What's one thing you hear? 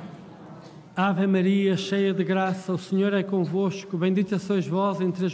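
An elderly man chants loudly through a microphone.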